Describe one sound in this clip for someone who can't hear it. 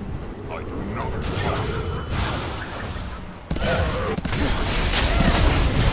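Video game combat effects clash and blast in quick bursts.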